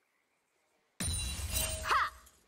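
Game spell effects whoosh and burst in quick succession.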